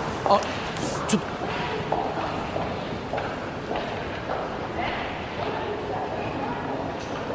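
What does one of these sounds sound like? A young man speaks hesitantly, close by.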